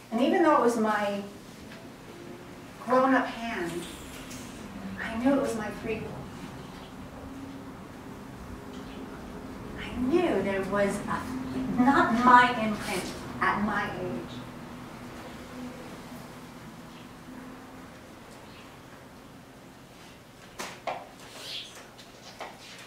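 A middle-aged woman sings through a microphone in short expressive phrases.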